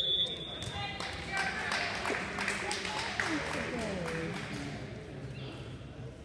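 A crowd of spectators and players chatters and calls out.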